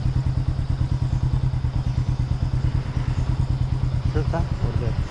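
A motorbike engine chugs steadily close by.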